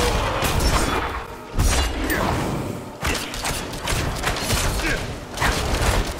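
Sword strikes and spell blasts clash in quick bursts.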